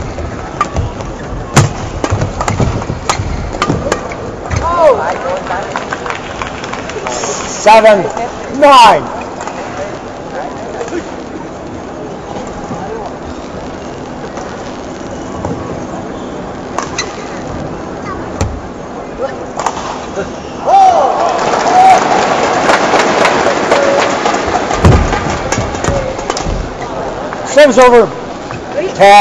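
Shuttlecocks are struck with sharp pops of badminton rackets.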